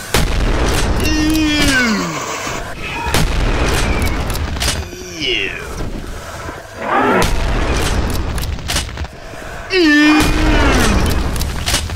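A creature screams in pain as it dies.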